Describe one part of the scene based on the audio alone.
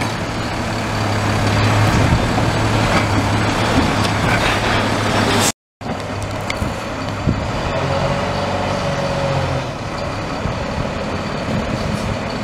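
A garbage truck's hydraulic arm whines as it lifts a bin.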